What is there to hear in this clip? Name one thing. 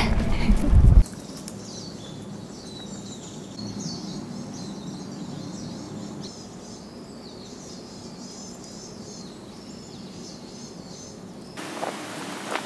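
Birds chirp in the trees.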